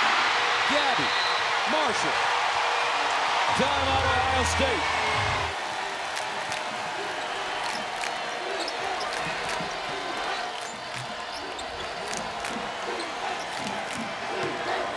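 A large crowd cheers loudly in an echoing arena, then quiets to a murmur.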